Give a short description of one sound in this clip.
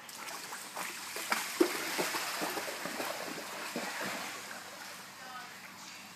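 A dog bounds into water with a big splash.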